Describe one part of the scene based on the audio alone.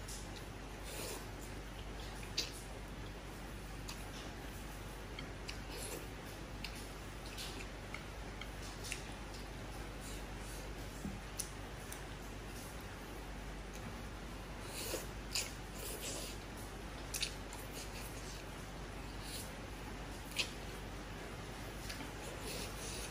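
A woman slurps noodles loudly, close up.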